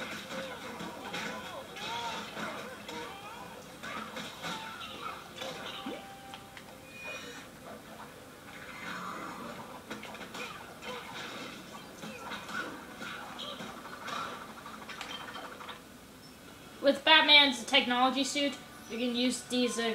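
Upbeat video game music plays through a television speaker.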